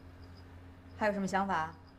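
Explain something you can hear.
A woman speaks calmly up close.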